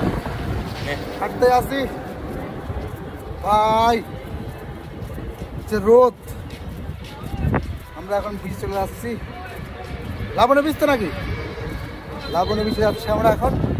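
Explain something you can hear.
A man talks loudly and with animation close by, outdoors.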